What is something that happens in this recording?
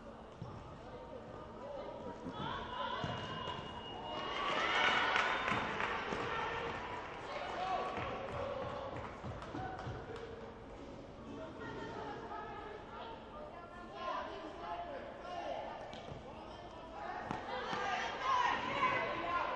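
Players shout and call out to each other across a large echoing hall.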